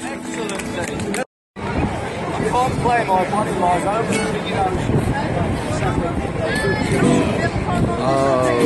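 Acoustic guitars strum a lively tune outdoors.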